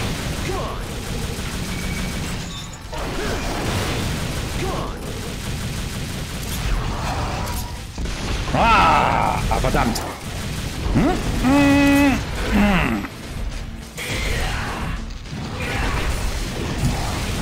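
Sword slashes and impacts clash repeatedly.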